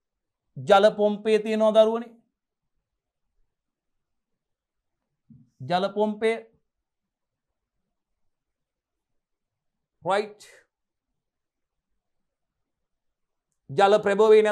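A man lectures calmly into a close microphone, in short bursts with pauses.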